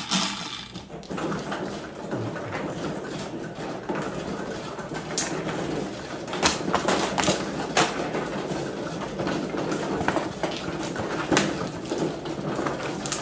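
Tiles click against each other as hands straighten the walls.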